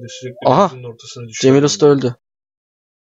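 A man groans and gasps in pain.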